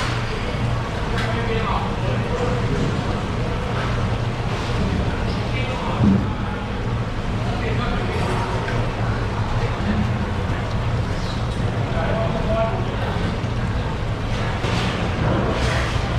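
A filleting knife slices through raw fish flesh.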